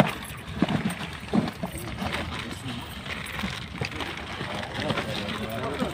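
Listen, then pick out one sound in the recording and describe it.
A cardboard box scrapes and thumps as it is lifted.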